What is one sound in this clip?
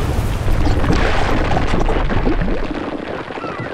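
Rocks clatter down.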